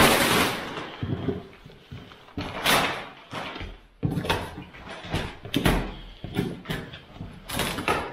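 Cardboard scrapes and thuds.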